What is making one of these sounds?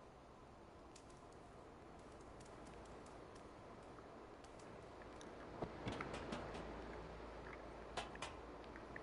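A cat's paws pad softly on pavement.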